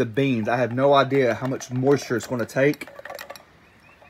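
Liquid from a can splashes through a strainer into a bowl.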